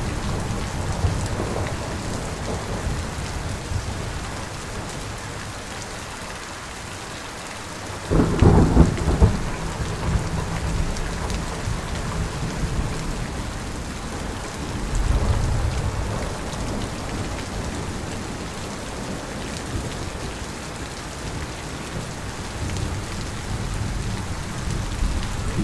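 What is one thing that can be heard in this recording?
Heavy rain pours down steadily outdoors.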